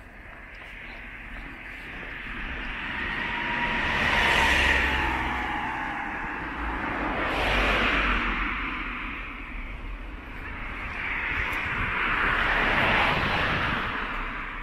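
Cars whoosh past one after another on a nearby road.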